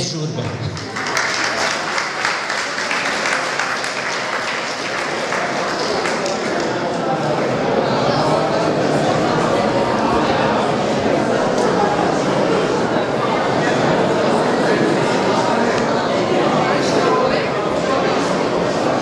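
A large crowd of men and women chatters loudly all around.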